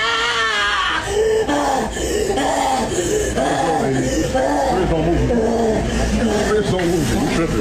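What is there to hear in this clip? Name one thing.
A woman shouts angrily close by.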